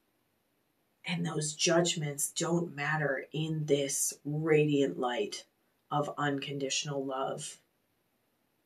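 A woman speaks softly and calmly close to a microphone.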